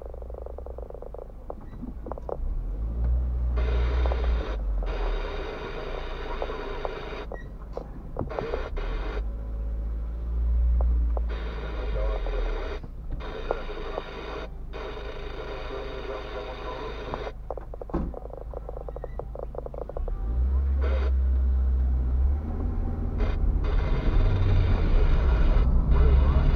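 A car engine rumbles low from inside the cabin.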